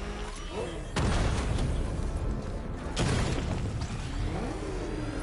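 A car engine suddenly roars louder in bursts.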